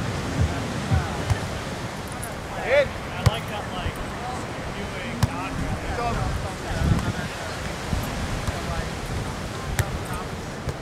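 Waves wash onto a beach in a steady rush.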